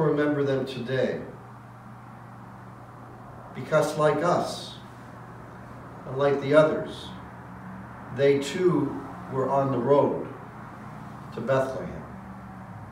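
An older man speaks calmly and slowly, close by, with pauses.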